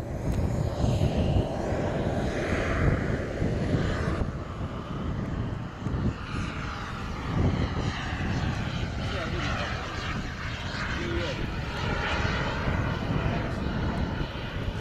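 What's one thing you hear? A small jet engine roars and whines as a model plane takes off and climbs away.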